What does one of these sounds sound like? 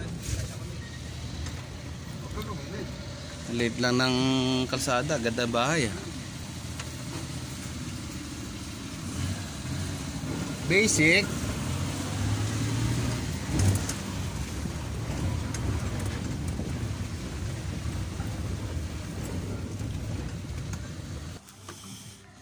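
A motor vehicle engine rumbles steadily.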